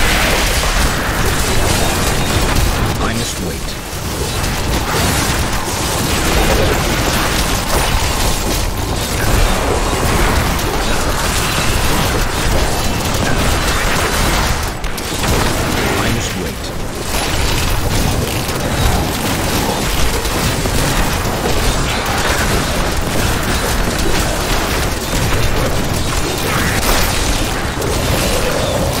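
Game combat effects clash and crackle with spell blasts and hits throughout.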